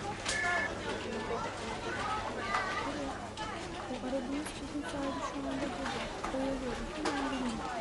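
A young woman talks into a telephone.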